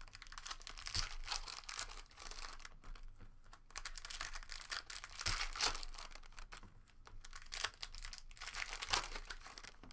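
Card packs tap and slap against a stack.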